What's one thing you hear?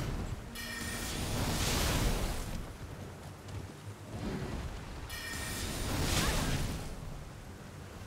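Icy magic blasts whoosh and crackle loudly.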